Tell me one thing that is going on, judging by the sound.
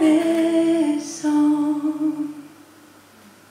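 A young woman sings softly into a microphone, holding long notes.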